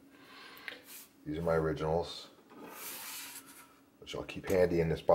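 A hand slides and rustles across a tabletop.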